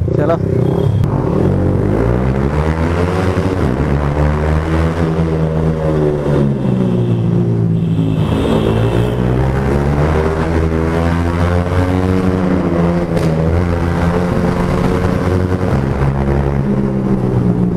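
A motorcycle engine roars close by, revving up and down as it rides.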